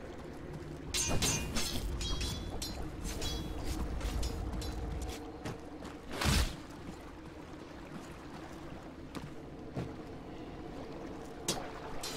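Game combat sound effects clash and ring out in quick bursts.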